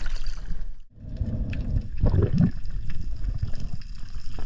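Muffled bubbling and rumbling under the water.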